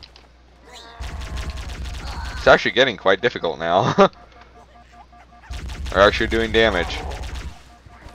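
A plasma gun fires in rapid bursts.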